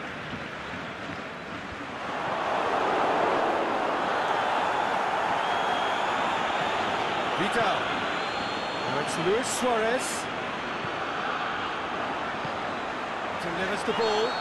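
A large stadium crowd roars steadily, swelling louder early on.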